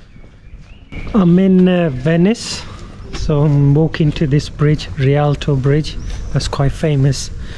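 A man talks close to the microphone, calmly and with animation.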